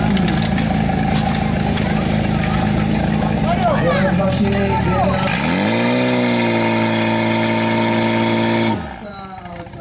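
A pump engine roars loudly and revs up.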